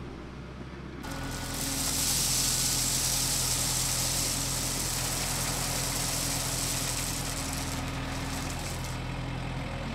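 Gravel pours and hisses out of a tractor's loader bucket.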